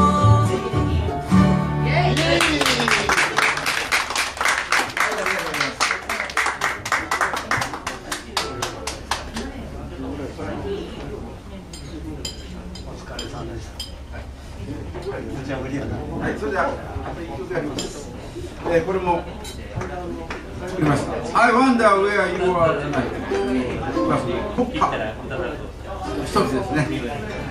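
A mandolin plays fast picked notes.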